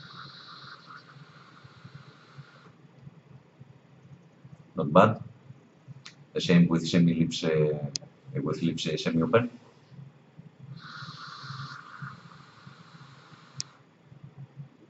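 A vape coil sizzles as a man draws on it.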